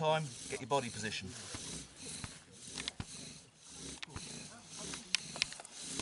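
A bow drill squeaks and rasps in quick back-and-forth strokes.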